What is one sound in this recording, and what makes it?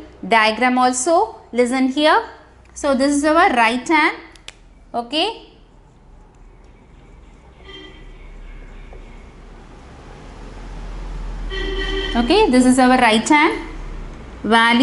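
A woman speaks calmly and clearly close to a microphone.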